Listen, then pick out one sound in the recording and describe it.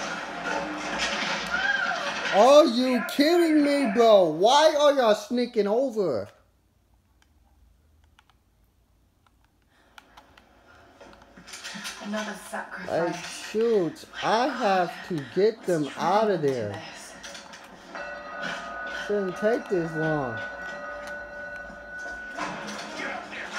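A television plays in the room.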